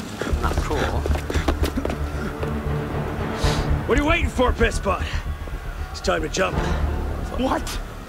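A man calls out urgently, close by.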